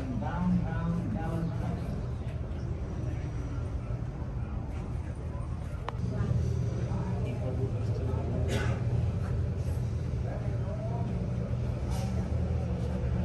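City traffic hums steadily from the street below.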